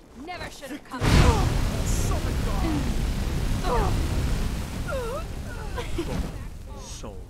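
A fire spell roars and crackles loudly.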